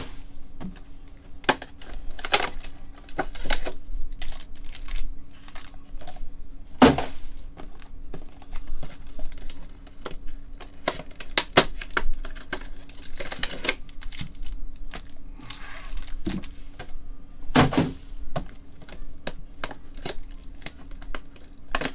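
Hands crinkle and tear open foil wrappers.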